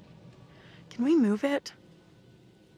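A young woman asks a question in a worried voice.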